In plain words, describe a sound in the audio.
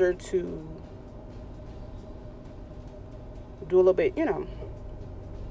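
Cloth rustles softly as it is folded.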